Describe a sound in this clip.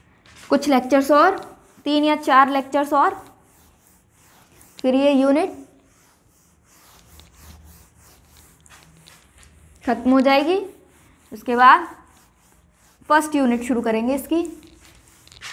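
A young woman speaks clearly and steadily, close by, in short bursts.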